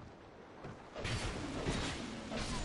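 A weapon strikes a creature with a loud crashing blow.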